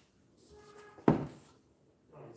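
A board knocks against a table.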